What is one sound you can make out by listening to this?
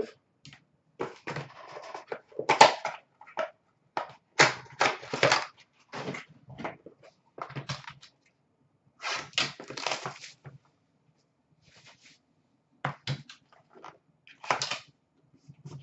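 Plastic card cases click and tap against each other.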